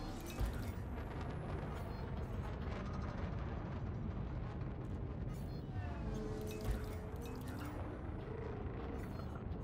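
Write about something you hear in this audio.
A spaceship engine rumbles low and steadily.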